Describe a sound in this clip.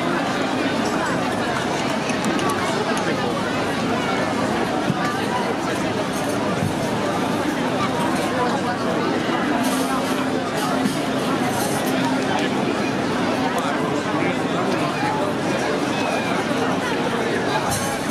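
A violin plays a melody.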